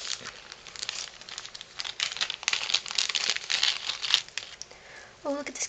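A plastic bag crinkles and rustles in someone's hands.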